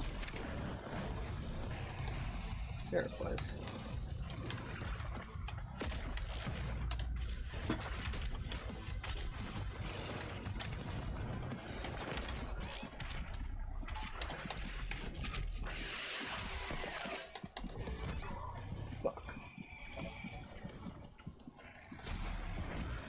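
Explosions boom and rumble from a video game.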